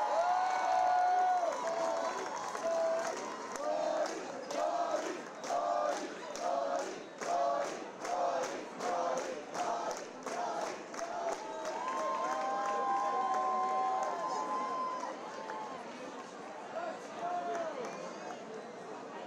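A large crowd cheers and chants loudly in a big echoing hall.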